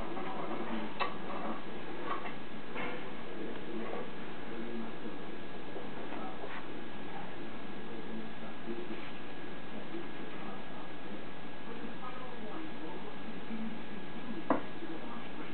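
Metal parts clink softly as they are fitted together.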